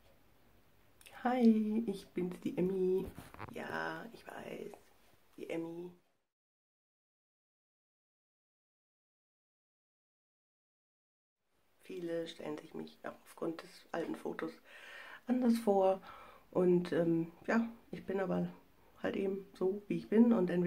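A woman talks close to the microphone, at first calmly, then with animation.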